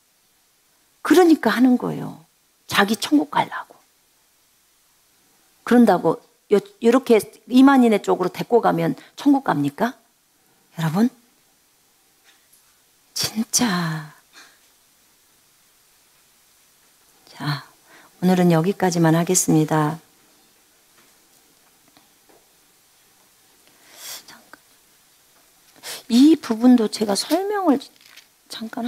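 A middle-aged woman speaks with animation into a microphone, in short bursts with pauses.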